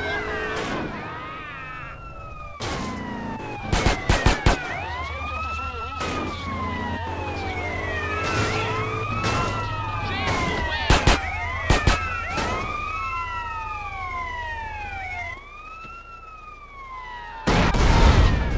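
Police sirens wail up and down.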